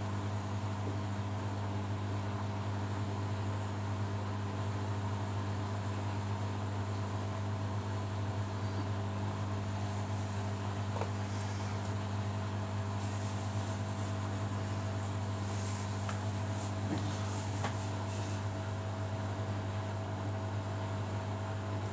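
Wet laundry tumbles and sloshes inside a washing machine drum.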